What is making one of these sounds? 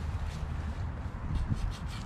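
A knife scrapes against wood.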